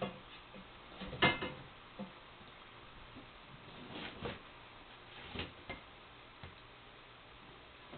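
Metal clanks and knocks.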